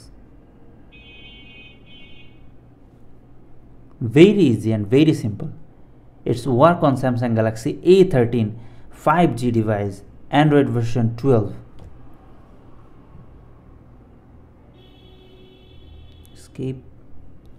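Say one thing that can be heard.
A phone plays a short electronic chime.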